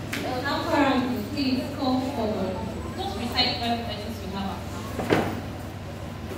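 A young woman speaks with animation through a microphone in an echoing hall.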